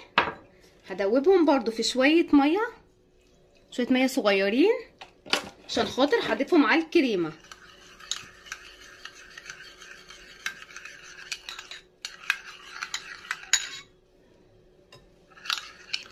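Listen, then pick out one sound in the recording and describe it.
A metal spoon clinks and scrapes against a small bowl.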